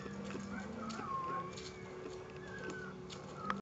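A dog rustles through leafy plants.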